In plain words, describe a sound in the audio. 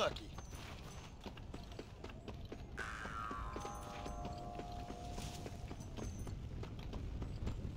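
Footsteps run quickly over dry dirt.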